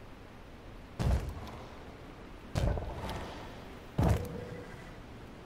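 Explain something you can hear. A deep, booming thud sounds three times as structures are placed.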